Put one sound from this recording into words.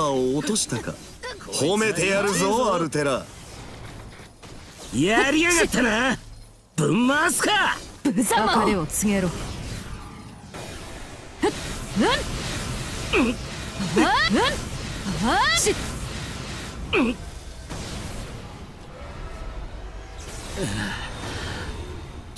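Blades slash and clash in quick, sharp hits.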